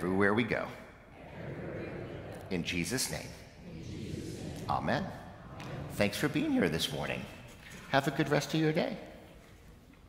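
A middle-aged man speaks gently and warmly into a microphone in a large echoing hall.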